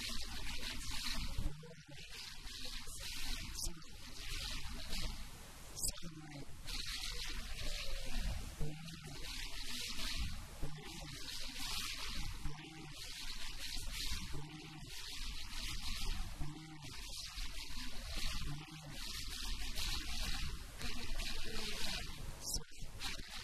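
A young man recites loudly and rhythmically through a microphone in an echoing hall.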